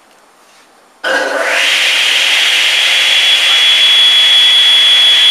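A table saw motor starts up and spins up into a loud, steady high whine.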